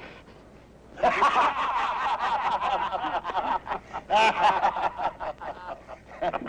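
A group of men laugh and shout together.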